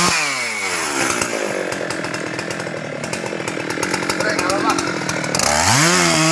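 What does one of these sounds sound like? A chainsaw cuts into a tree trunk.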